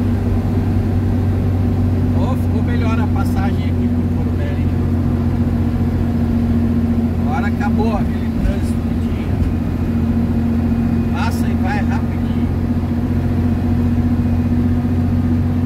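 A vehicle engine drones steadily with a low hum.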